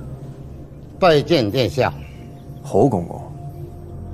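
A young man speaks a short respectful greeting.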